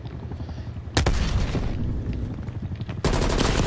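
A rifle fires rapid shots indoors.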